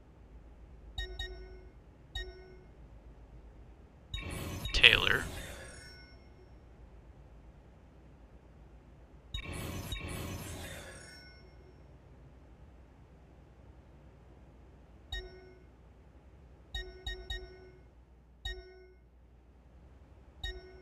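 Menu clicks tick softly, one after another.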